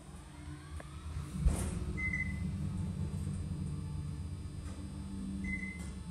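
A lift hums and rumbles as it moves.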